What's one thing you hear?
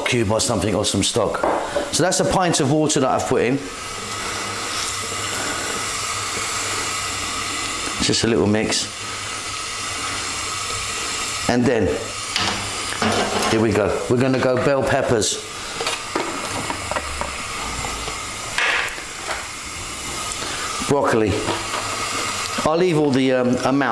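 A sauce bubbles and simmers in a pan.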